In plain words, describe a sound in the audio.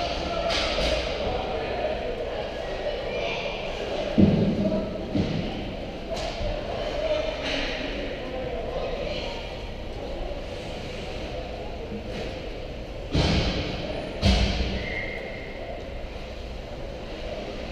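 Ice skates scrape and glide on ice in a large echoing rink.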